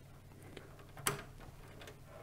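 A plug clicks firmly into a socket.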